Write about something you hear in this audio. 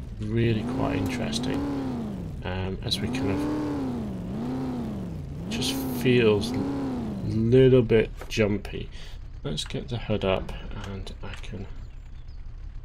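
A car engine revs up and down over and over.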